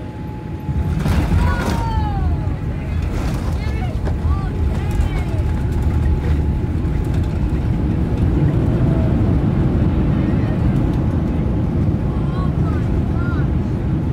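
Jet engines roar louder as the airliner slows down.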